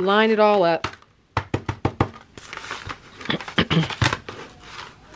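Paper pages riffle and flap.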